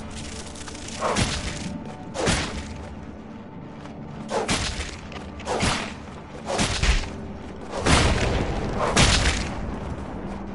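Weapons whoosh and strike in a fight, in sharp repeated bursts.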